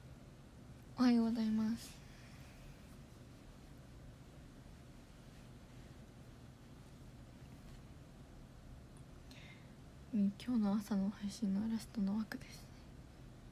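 A young woman speaks briefly and softly, close to the microphone.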